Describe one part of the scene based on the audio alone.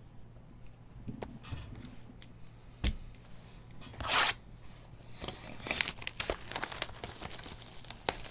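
Hands handle a cardboard box, tapping and rubbing it.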